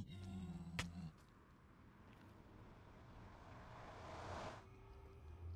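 A portal hums and swells with a rising whoosh.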